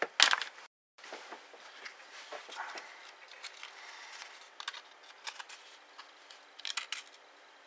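Fingers rustle and tap on a small object.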